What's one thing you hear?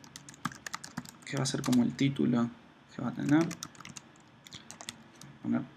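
Keys clatter quickly on a computer keyboard.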